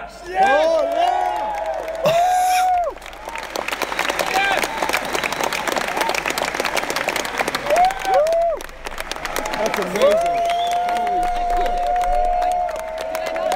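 A man whoops and cheers loudly into a close microphone.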